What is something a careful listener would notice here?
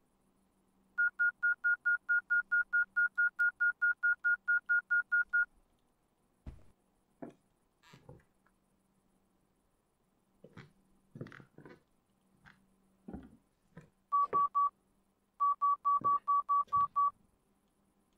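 An electronic detector beeps rapidly and steadily in short bursts.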